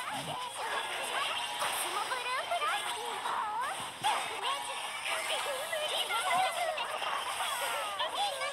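Magical game battle effects whoosh and chime throughout.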